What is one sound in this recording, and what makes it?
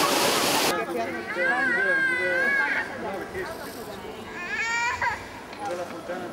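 A little girl talks in a high voice close by.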